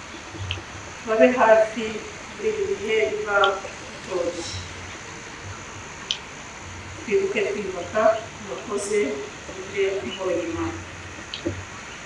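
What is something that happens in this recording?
A woman speaks calmly into a microphone over a loudspeaker, outdoors.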